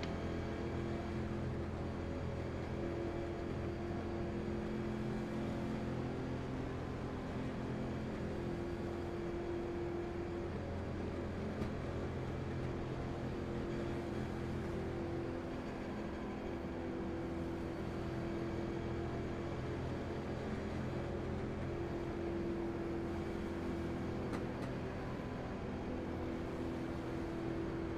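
A race car engine drones steadily at low speed.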